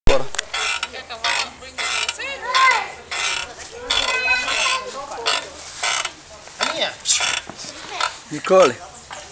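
A metal spring rider creaks and squeaks as it rocks back and forth.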